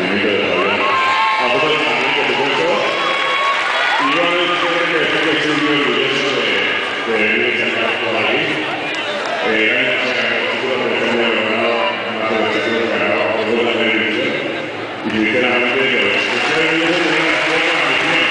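A young man speaks with feeling into a microphone over loudspeakers in a large echoing hall.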